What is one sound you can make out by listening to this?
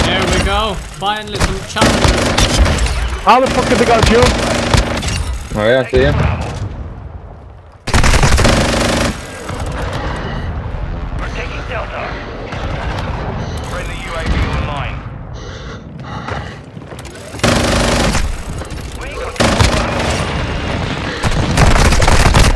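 A rotary machine gun fires in long, roaring bursts.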